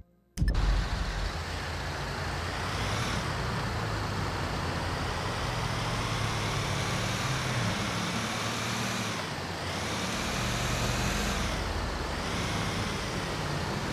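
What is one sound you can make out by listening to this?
A heavy truck engine rumbles steadily as the truck drives along.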